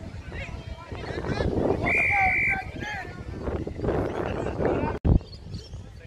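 Spectators cheer and shout from the sideline.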